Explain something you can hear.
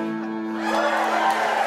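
A fiddle plays a short phrase up close.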